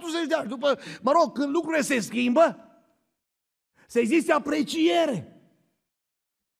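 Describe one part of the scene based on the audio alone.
A middle-aged man speaks with emphasis into a microphone.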